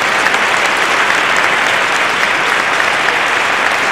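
A pipe organ plays loud, full chords.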